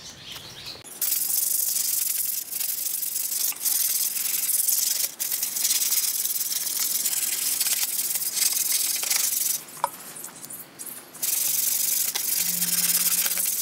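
Water runs from a tap and splashes onto a concrete floor.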